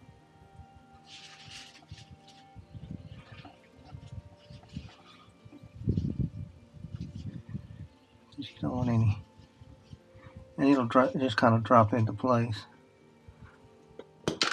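A tool scrapes and taps around a metal hub.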